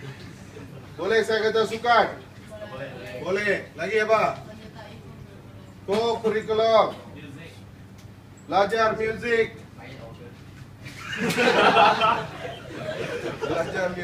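A man speaks clearly and deliberately, in bursts with pauses.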